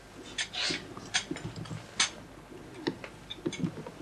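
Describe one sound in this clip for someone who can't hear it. Dishes and cutlery clink.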